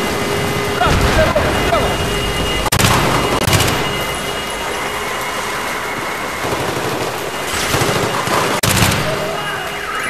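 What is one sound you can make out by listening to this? Rifle shots fire in quick bursts, echoing in a large hall.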